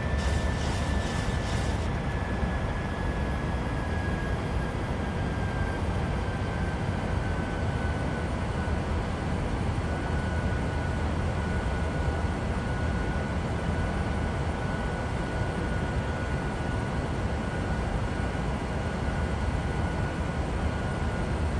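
Jet engines hum in a steady, low drone.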